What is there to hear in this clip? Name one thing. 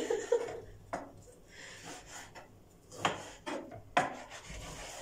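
A knife taps on a cutting board.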